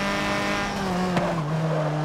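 An exhaust pops and crackles as the car slows.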